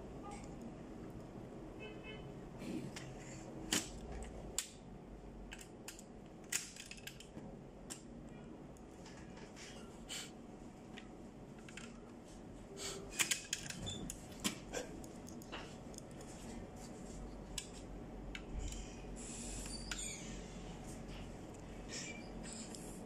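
Plastic parts click and clatter as hands take apart a printer unit.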